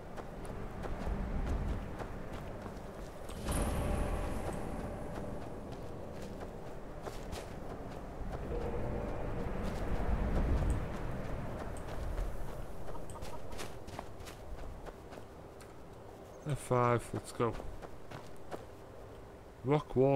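Footsteps crunch on snowy ground and gravel.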